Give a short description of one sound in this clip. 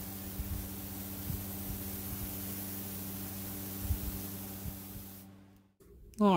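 An airbrush hisses steadily.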